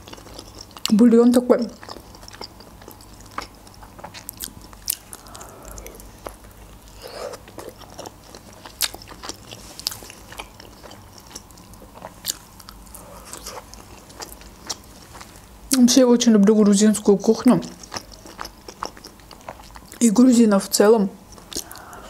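A young woman speaks in short bursts close to a microphone.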